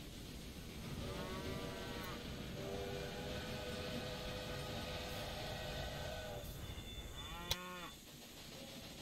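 A steam locomotive whistle blows twice.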